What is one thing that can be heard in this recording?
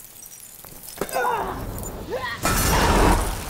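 A woman screams.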